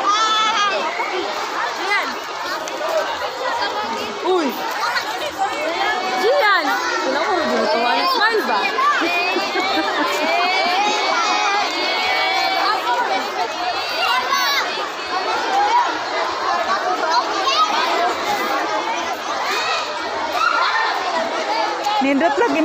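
A crowd of children chatters and calls out outdoors.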